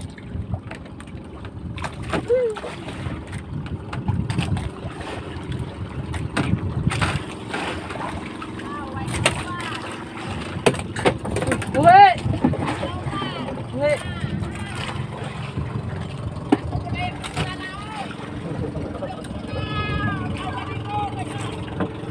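Water splashes and laps against a small boat's hull.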